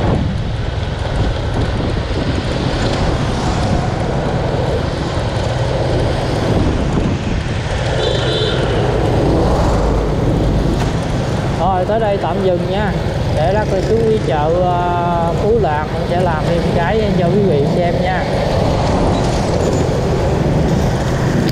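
Wind rushes past in a steady roar.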